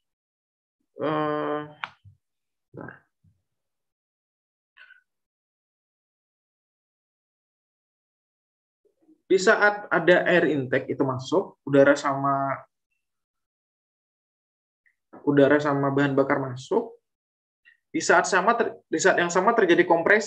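A man speaks calmly through an online call, in short bursts with pauses.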